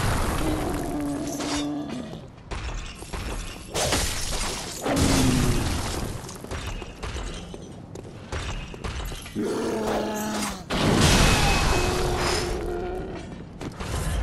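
A large creature growls and roars close by.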